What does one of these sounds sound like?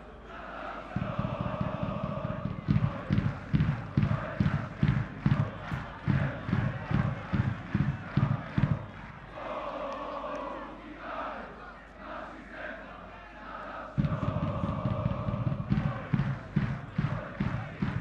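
A large crowd chants rhythmically in an open stadium.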